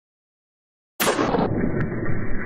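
A pistol shot cracks sharply outdoors.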